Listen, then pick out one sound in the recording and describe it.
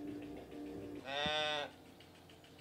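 A sheep bleats loudly nearby.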